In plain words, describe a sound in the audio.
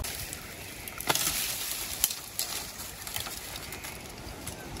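Footsteps crunch on dry ash and leaves.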